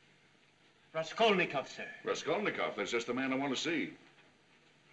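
A middle-aged man speaks sternly.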